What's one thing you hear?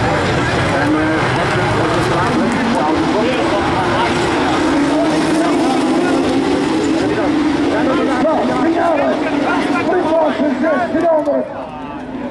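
Racing car engines roar and rev nearby, outdoors.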